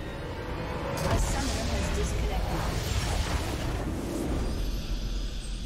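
A huge structure explodes with a deep rumble.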